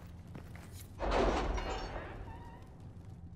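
A heavy wooden door swings open.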